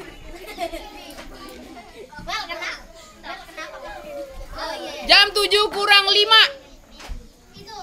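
Several girls chatter and talk excitedly nearby.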